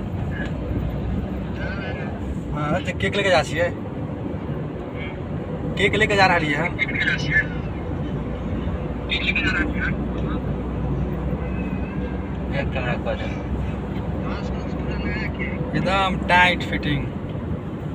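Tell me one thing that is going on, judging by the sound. A small petrol car drives along a paved road, heard from inside the cabin.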